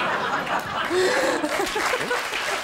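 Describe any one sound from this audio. A middle-aged man laughs heartily into a microphone.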